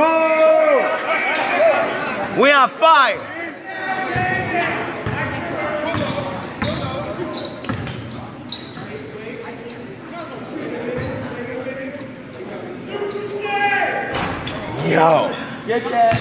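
A crowd of young women and girls shouts and cheers in a large echoing gym.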